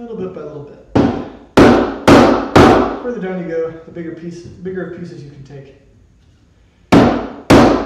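A wooden mallet strikes a chisel with sharp, ringing knocks.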